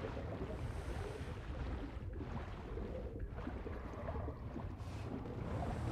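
Wind rushes steadily past a falling figure.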